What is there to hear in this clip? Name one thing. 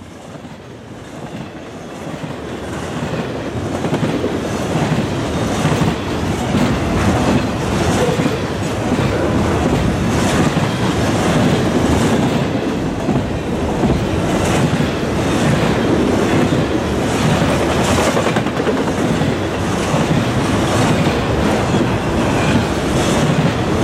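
A freight train rumbles past close by, growing louder.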